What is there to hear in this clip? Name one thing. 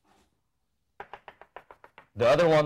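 Chalk taps and clicks against a board.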